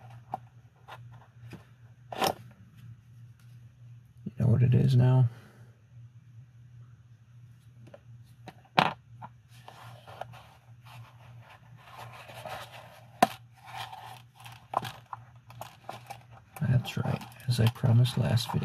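Small metal tools click and tap against a wallet.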